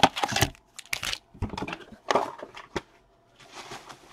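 Cards are handled and shuffled with soft clicks.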